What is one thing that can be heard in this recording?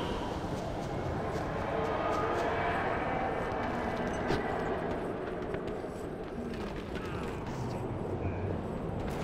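Quick footsteps patter over rocky ground.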